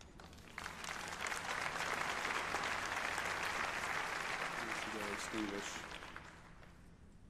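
An audience applauds loudly in a large hall, then the applause fades.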